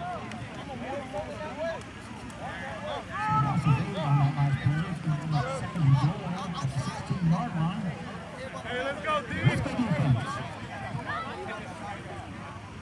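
A crowd of spectators chatters and cheers outdoors at a distance.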